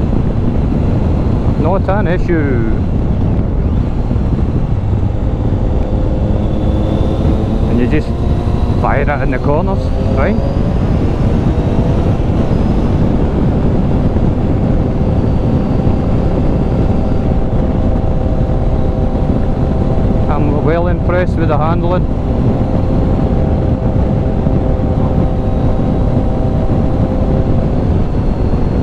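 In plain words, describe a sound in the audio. Wind rumbles loudly against the rider.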